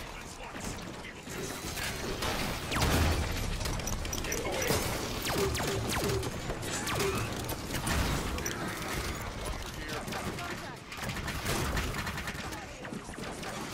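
Guns fire rapid bursts of shots.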